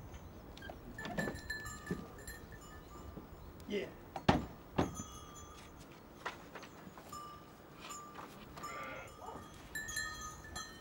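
Sheep hooves shuffle and thud on straw and ground.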